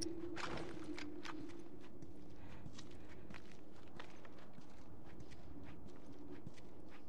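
Footsteps tread softly across a hard floor.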